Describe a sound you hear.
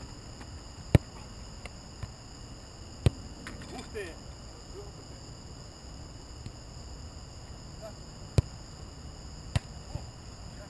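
A soccer ball is kicked with sharp thuds.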